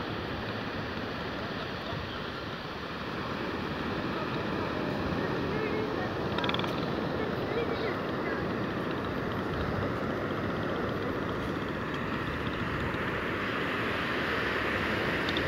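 Waves wash onto a shore in the distance.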